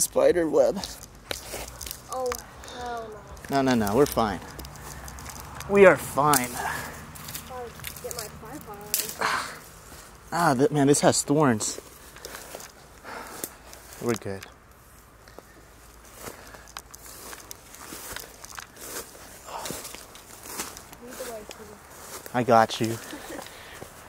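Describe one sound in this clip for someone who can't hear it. Footsteps rustle through low leafy plants on the ground.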